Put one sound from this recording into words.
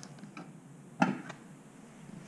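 A metal can knocks against a hard counter.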